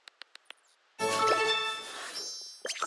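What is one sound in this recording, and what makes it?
A bright, sparkling fanfare of chimes rings out.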